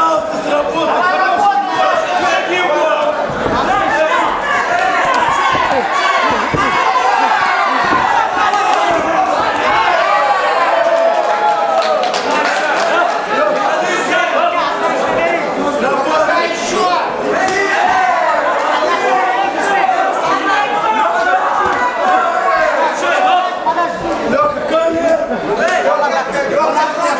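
A crowd in a large hall shouts and cheers loudly.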